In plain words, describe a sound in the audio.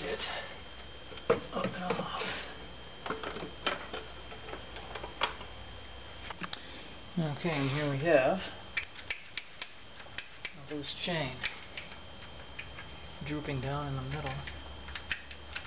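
Metal engine parts click and clatter as hands work on them.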